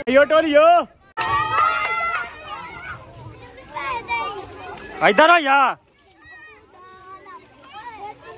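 A crowd of children and young men shout and cheer excitedly outdoors.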